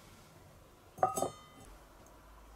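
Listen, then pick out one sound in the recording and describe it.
A metal pan clanks as it is set down over a fire.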